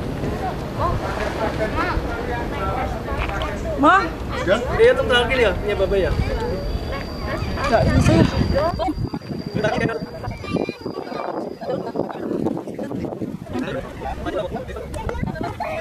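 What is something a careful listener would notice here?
Several adults chat and laugh nearby.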